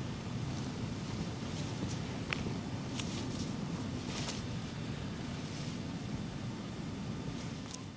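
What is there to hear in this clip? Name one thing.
Boots crunch through deep snow in steady footsteps.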